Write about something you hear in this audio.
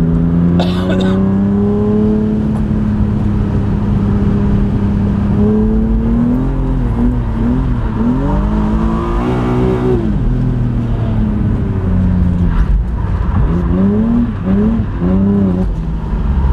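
A car engine roars loudly from inside the car, revving up and down through the gears.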